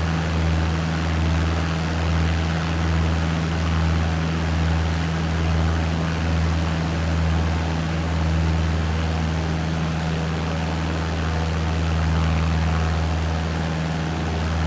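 A small propeller plane's engine drones steadily with a low, gently pulsing hum.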